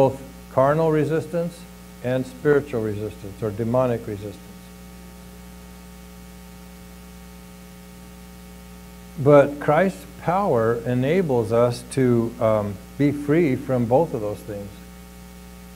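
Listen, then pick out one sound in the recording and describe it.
A middle-aged man speaks calmly through a microphone.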